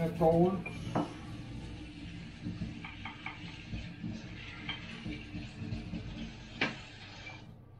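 Dishes clink in a sink.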